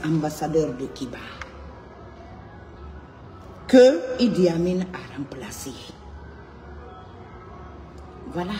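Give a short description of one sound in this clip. A woman speaks emotionally through a phone microphone, in bursts with pauses.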